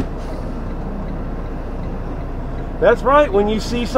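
A large truck rumbles past close by.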